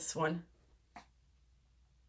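A plastic cup is set down with a light tap.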